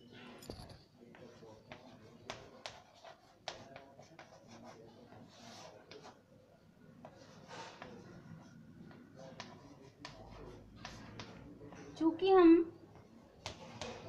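Chalk taps and scratches on a chalkboard.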